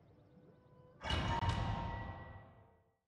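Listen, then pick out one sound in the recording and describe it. A game menu plays a bright swelling whoosh that slowly fades.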